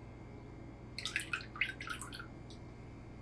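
A metal ladle clinks against a steel bowl.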